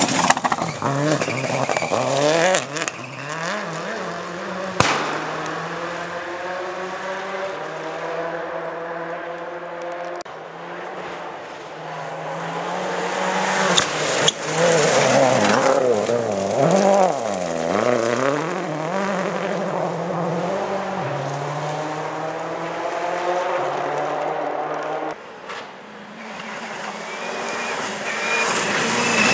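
A rally car engine roars and revs hard as it speeds past.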